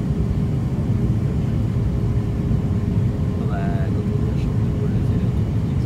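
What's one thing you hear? An aircraft engine roars steadily as a plane rolls along a runway.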